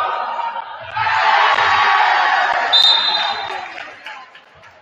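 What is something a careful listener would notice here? A crowd cheers and roars in a large echoing gym.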